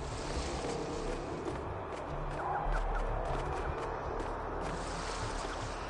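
Light footsteps patter quickly across grass.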